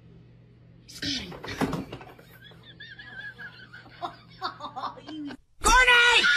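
A woman cries out in surprise.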